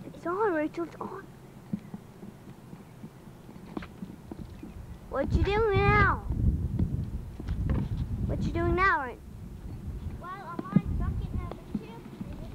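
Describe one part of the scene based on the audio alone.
A young girl speaks close by in short, animated bursts.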